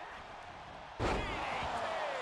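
A body slams hard onto a wrestling mat with a loud thud.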